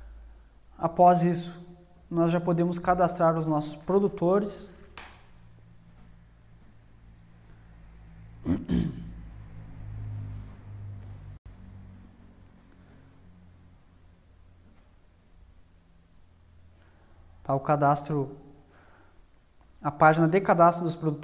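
A man speaks calmly into a nearby microphone, in pauses.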